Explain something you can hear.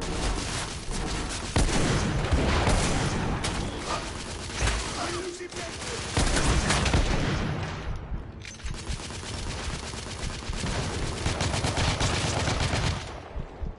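Gunshots crack loudly in rapid bursts.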